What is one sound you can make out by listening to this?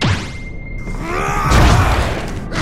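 A man snarls angrily up close.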